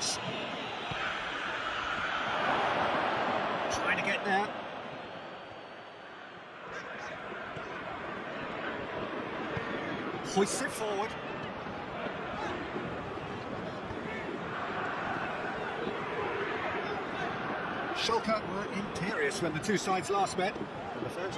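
A stadium crowd roars and chants steadily.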